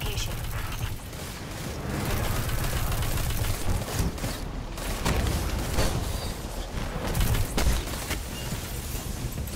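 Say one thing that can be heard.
Energy gunshots fire in quick bursts.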